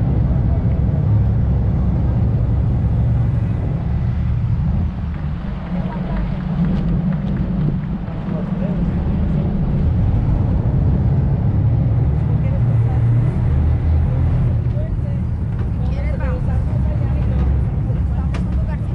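Water splashes against a moving hull.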